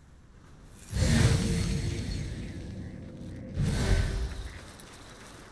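A loud blast booms and slowly fades.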